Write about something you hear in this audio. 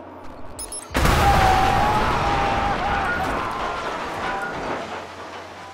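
A loud explosion booms and rumbles away.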